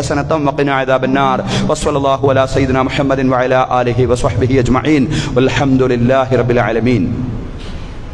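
A man speaks into a microphone with animation, heard through a loudspeaker in an echoing hall.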